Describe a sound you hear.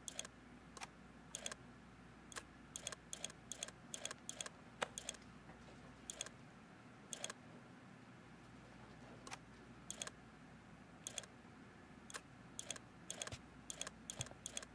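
Short menu clicks sound repeatedly as options change.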